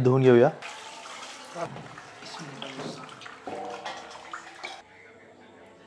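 Hands rub and splash fish in water.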